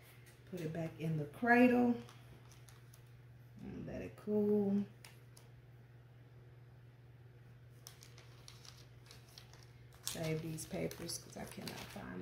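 Transfer paper rustles and crackles as it is peeled away.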